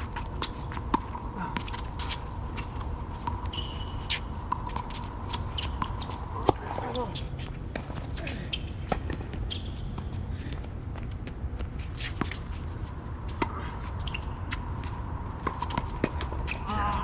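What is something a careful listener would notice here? Paddles strike a ball with sharp pops, back and forth.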